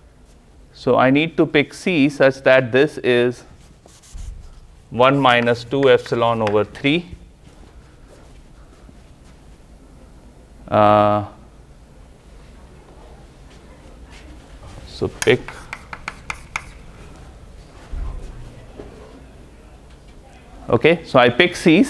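A man lectures aloud in a large echoing room, pausing between phrases.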